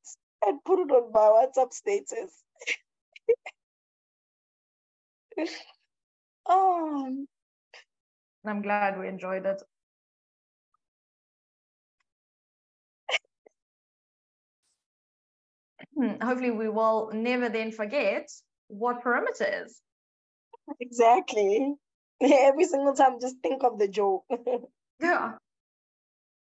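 A woman speaks calmly over an online call, with pauses.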